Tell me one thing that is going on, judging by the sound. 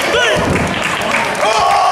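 A body thuds onto a wrestling mat.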